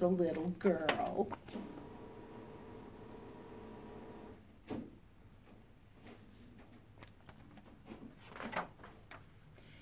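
Book pages rustle as they turn.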